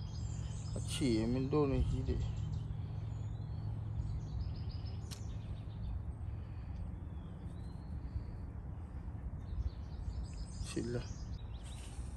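A young man speaks briefly, close by.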